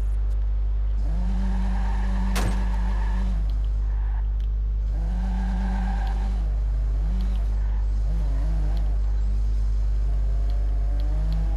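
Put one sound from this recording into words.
A car engine revs and roars as the car speeds off.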